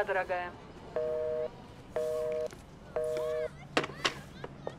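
A telephone handset beeps in short, even pulses.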